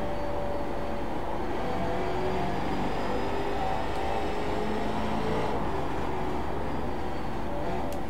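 A racing car engine roars steadily at high revs.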